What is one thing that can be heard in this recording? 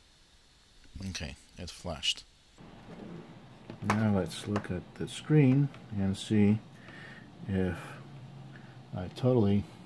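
A small circuit board clicks and knocks as it is handled.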